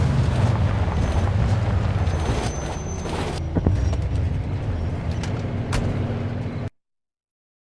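Tyres roll over a rough road.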